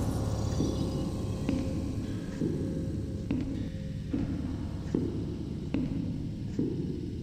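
Heavy footsteps thud steadily on stone steps.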